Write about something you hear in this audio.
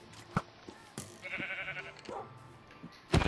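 A sheep bleats nearby.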